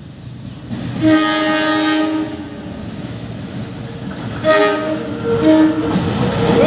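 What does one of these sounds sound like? A diesel train horn blares loudly.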